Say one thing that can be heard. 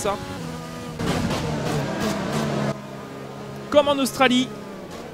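A racing car engine drones at high revs.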